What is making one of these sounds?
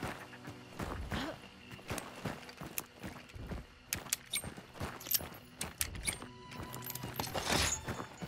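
A shotgun is loaded with metallic clicks.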